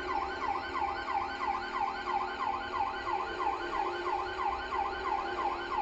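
A police siren wails in a fast, steady up-and-down cycle.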